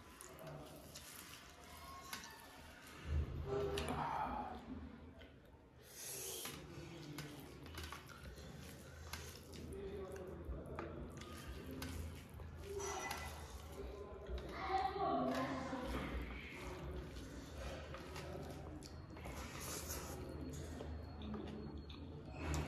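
Fingers squish and mix moist rice on a metal tray.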